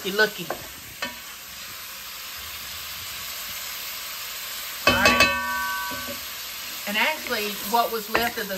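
Food sizzles in a pot.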